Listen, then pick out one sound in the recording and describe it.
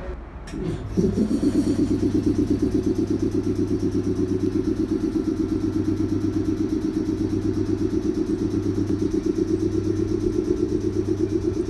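A train engine idles nearby with a steady, throbbing rumble.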